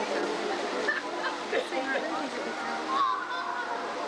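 Leaping jets of water from a fountain splash into small pools.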